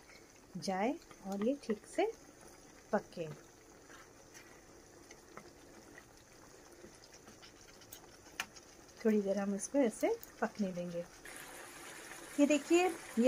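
Thick sauce bubbles and sizzles in a pan.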